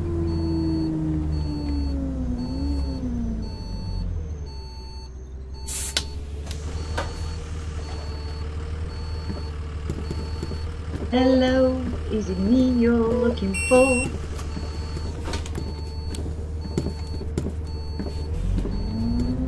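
A bus engine rumbles low and slows down to an idle.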